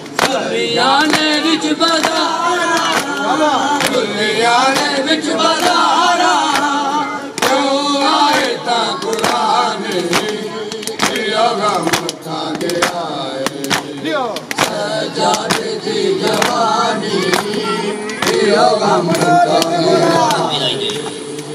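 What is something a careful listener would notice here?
A crowd of men chants loudly together.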